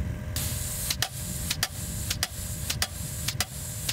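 Plastic clips click sharply against a metal fence post.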